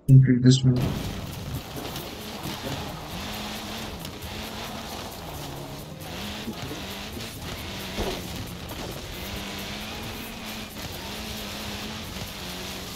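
A rally car engine drones and revs as the car drives over rough ground.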